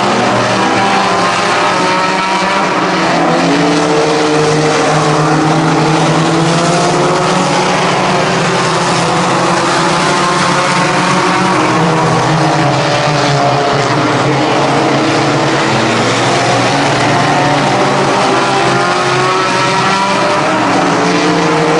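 Race car engines roar loudly, their pitch rising and falling as the cars speed past.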